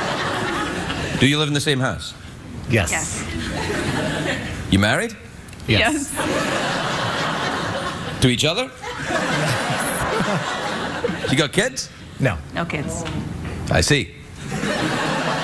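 A studio audience applauds and cheers loudly.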